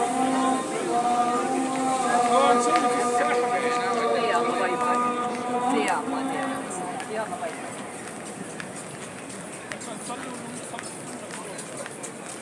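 A crowd of men and women murmurs and talks nearby outdoors.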